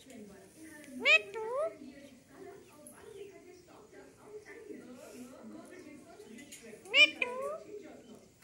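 A parrot gives loud, sharp squawks close by.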